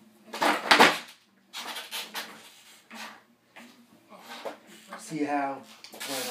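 A skateboard rolls and thumps on carpet.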